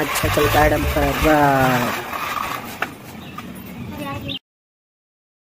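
Plastic toy wheels roll and rattle over rough concrete.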